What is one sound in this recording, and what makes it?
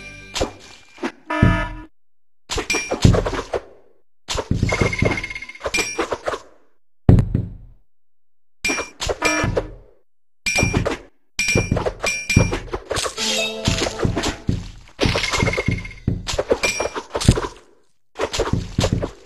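Game sound effects of blades swishing and slicing play in bursts.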